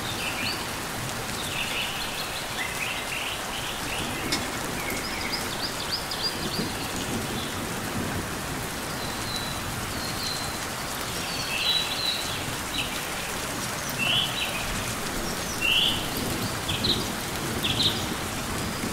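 Light rain patters steadily on leaves.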